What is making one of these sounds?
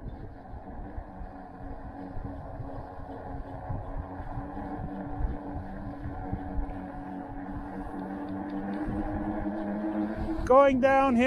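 An electric bike motor hums steadily.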